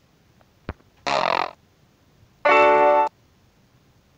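A piano-like chord sounds twice from a small speaker.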